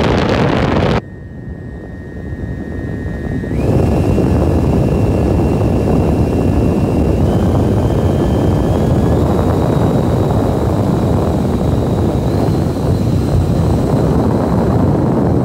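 A toy jet engine roars steadily, with a high whine rising in steps.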